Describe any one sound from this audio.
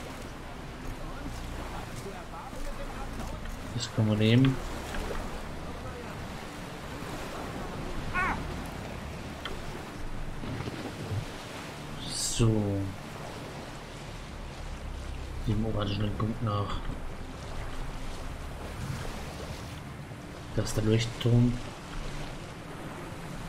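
Waves lap and splash against a small sailing boat.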